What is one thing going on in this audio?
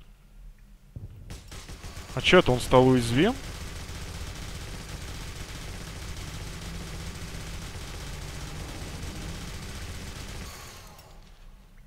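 A heavy rotary gun fires in a rapid, steady roar.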